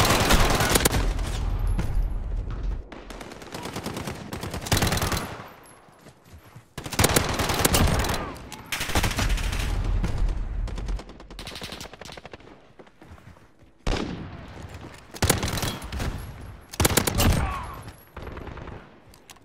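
Gunfire bursts ring out in quick volleys.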